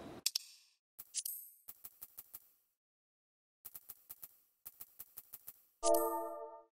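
Soft interface clicks tick in quick bursts.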